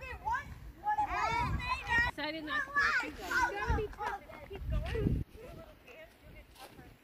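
Children talk and shout excitedly close by, outdoors.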